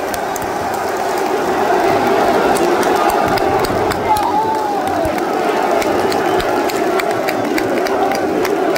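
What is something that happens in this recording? A large crowd cheers and chants loudly in an open stadium.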